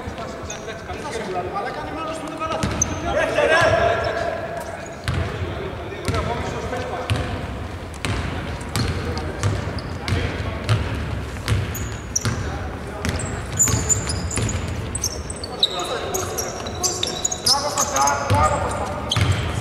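Men shout across a large echoing arena.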